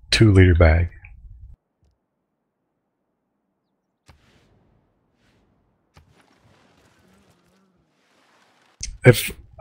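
A man talks with animation through a microphone.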